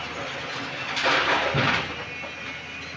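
Rocks crash and clatter as they are dumped into a truck bed.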